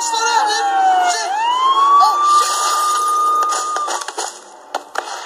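A police siren wails and glides up and down.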